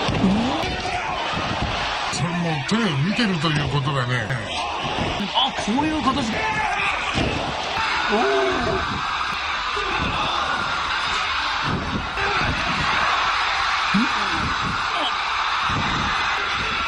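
A body thuds heavily onto a wrestling mat.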